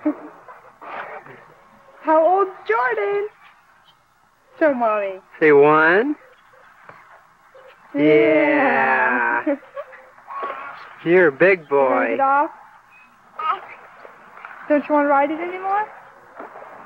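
A toddler babbles and chatters close by.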